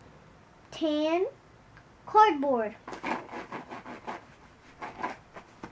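A young girl talks in a high, animated voice close by.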